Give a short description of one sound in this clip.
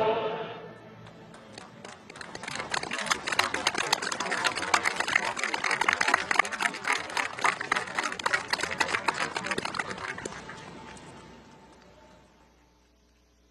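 A large crowd applauds, then fades away.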